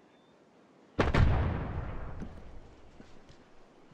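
A sniper rifle fires a single loud shot that rings out.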